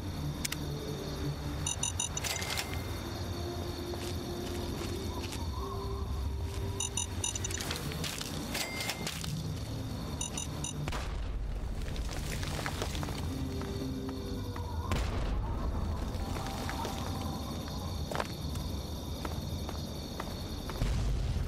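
Footsteps crunch on a rough road.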